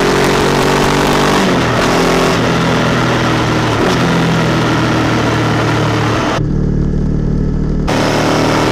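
A motorcycle engine hums and changes pitch as the rider shifts gears.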